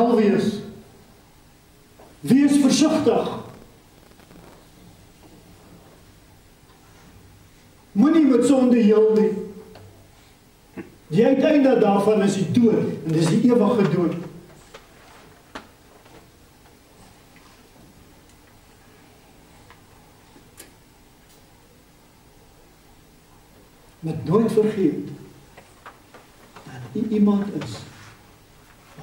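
An elderly man speaks through a microphone in bursts with long pauses, in a room with some echo.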